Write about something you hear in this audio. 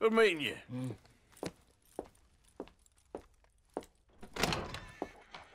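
Footsteps thud slowly on a wooden floor.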